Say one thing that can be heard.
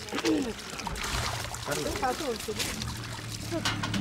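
Water pours and splashes into a bucket.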